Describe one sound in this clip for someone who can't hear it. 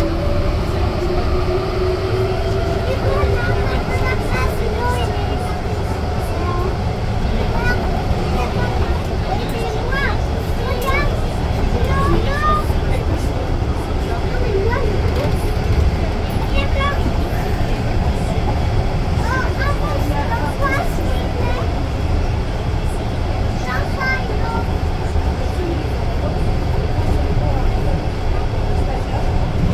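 A train rumbles along steadily.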